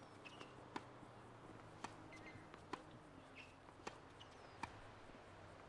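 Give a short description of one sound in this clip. A tennis racket hits a ball with sharp pops.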